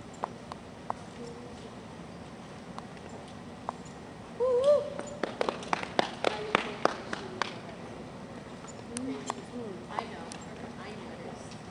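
A horse canters on soft dirt footing in a large echoing hall.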